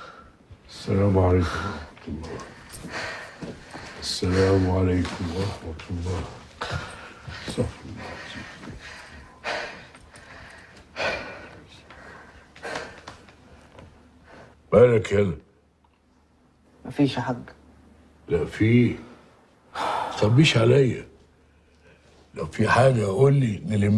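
An elderly man speaks calmly and with feeling, close by.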